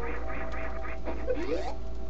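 A sharp electronic zap sounds with a rising sweep.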